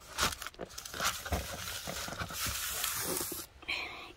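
A hand pats and rustles fabric.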